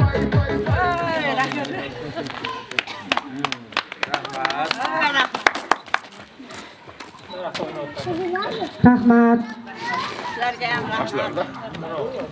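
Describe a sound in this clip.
Several women sing together into microphones, heard through loudspeakers outdoors.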